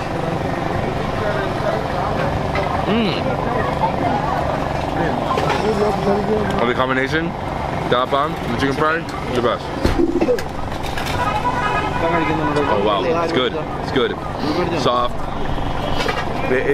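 A crowd chatters in the background outdoors.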